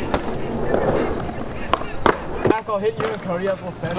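A bike wheel lands hard on concrete.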